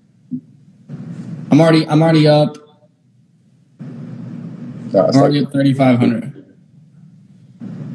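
A man talks loudly and with animation over an online call.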